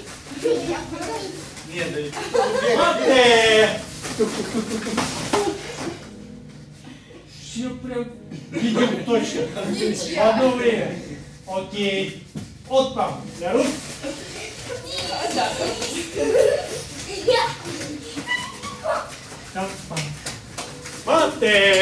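Bare feet thud and patter on a padded floor.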